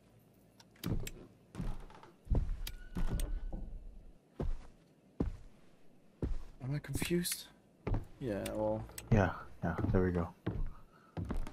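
Footsteps thud slowly on a wooden floor indoors.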